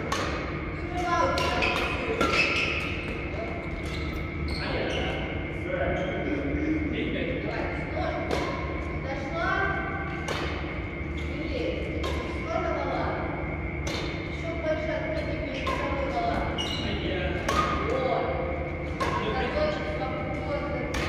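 Badminton rackets strike a shuttlecock with sharp pops in a large echoing hall.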